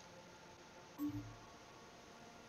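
A soft electronic menu blip sounds.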